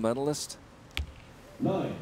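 An arrow thuds into a target.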